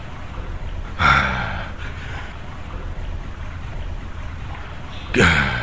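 A man speaks loudly with emotion, close by.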